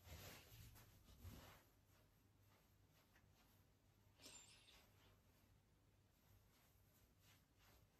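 A towel rubs and rustles against a face.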